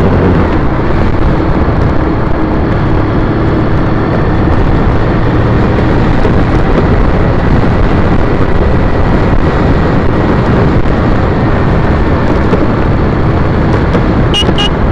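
Wind roars loudly and steadily across a moving microphone outdoors.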